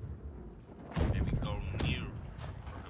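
A cannon fires with a loud boom that rumbles away.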